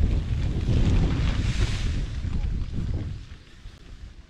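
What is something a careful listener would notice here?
A nylon tent rain fly rustles and flaps as it is shaken out.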